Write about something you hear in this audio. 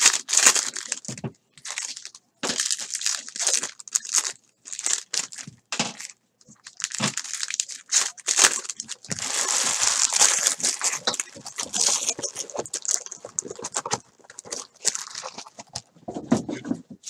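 Foil wrappers crinkle and tear as packs are ripped open.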